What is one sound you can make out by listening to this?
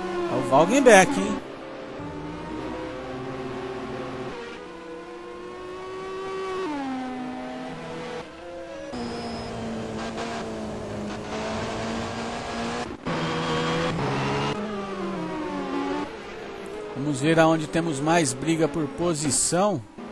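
A racing car engine roars, its pitch rising and falling as it speeds along.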